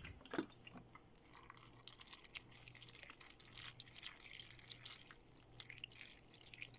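Food sizzles in a pot.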